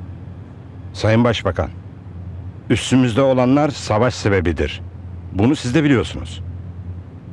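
A middle-aged man speaks seriously at close range.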